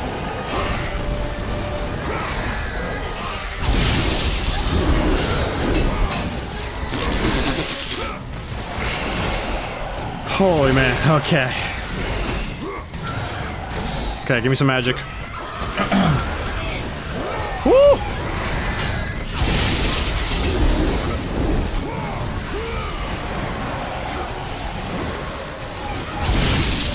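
Chained blades whoosh and slash in rapid strikes.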